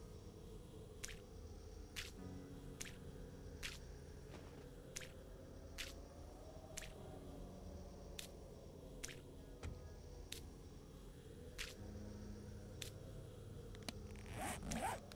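A paintbrush taps against wood in short, regular knocks.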